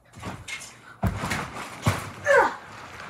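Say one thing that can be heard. A child lands on a bed with a soft thump.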